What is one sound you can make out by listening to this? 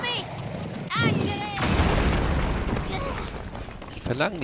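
A fiery explosion roars and crackles.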